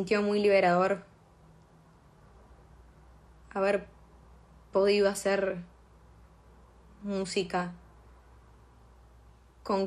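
A young woman speaks softly and slowly into a phone microphone, with long pauses.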